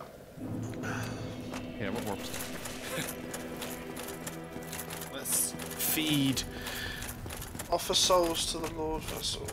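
Armoured footsteps clank and thud on stone at a run.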